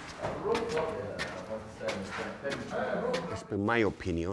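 Footsteps climb hard stairs.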